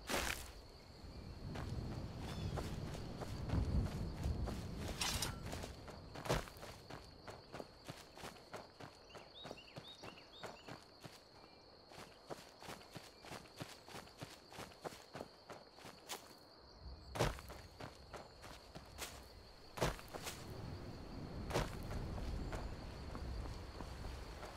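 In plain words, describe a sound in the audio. Footsteps crunch on grass and dirt at a steady walking pace.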